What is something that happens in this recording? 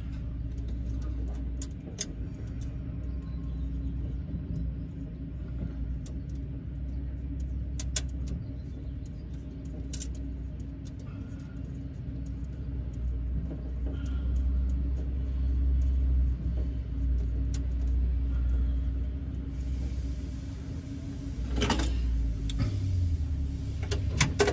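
Wires click and tick as they are fitted into terminal blocks.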